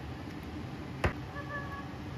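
A spoon knocks against a tin can.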